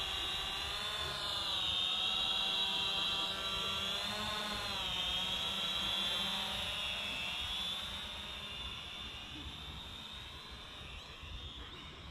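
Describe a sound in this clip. A drone's propellers whine close by, wavering in pitch, then fade as the drone flies off.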